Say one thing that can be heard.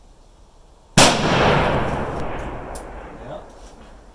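A gunshot cracks loudly nearby, and its echo rolls away slowly outdoors.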